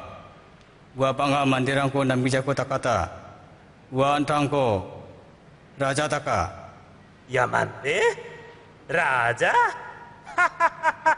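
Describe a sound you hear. A middle-aged man speaks with animation.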